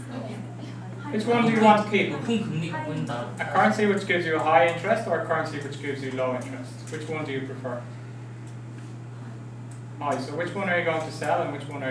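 A man lectures calmly, a short distance away.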